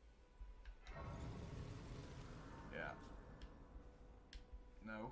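A soft, shimmering magical tone swells up and fades away.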